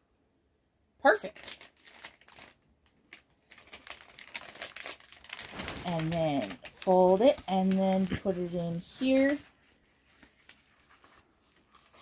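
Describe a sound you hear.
Paper packets crinkle and rustle in someone's hands.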